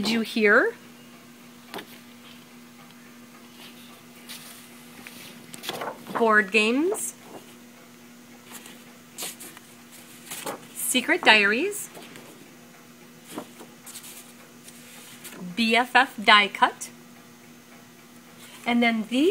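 Sheets of stiff paper rustle and flap as they are handled.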